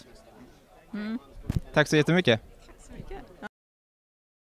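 A young man speaks into a handheld microphone close by.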